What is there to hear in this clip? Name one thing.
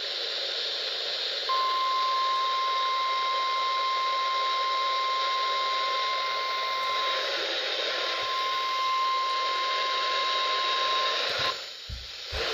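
Radio static hisses from a small handheld radio.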